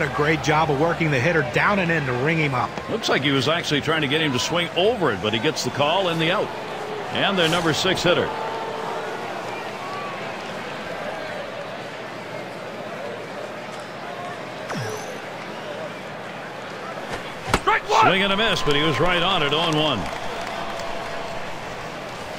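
A crowd murmurs in a large stadium.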